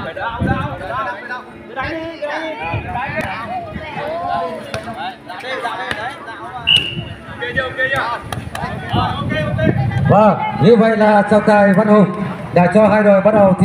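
Men and women shout and cheer loudly outdoors.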